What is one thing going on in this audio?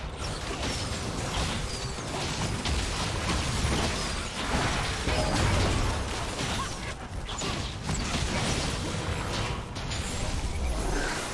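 Magic spells blast and crackle in a fast fight.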